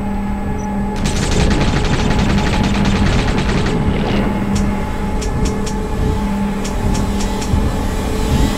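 A pistol fires a rapid series of shots.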